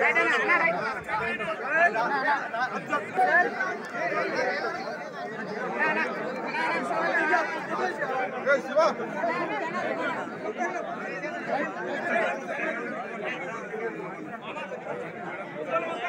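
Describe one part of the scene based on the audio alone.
A large crowd of men talk and shout at once, close by, outdoors.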